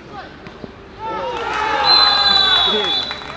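A crowd of young people cheers and yells after a goal.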